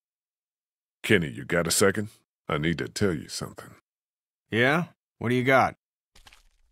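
A man speaks hesitantly and quietly.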